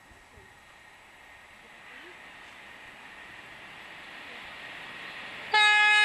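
A train approaches at high speed with a rising rushing roar.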